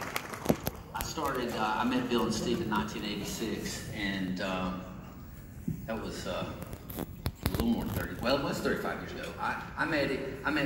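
A man speaks calmly through a loudspeaker in a large room.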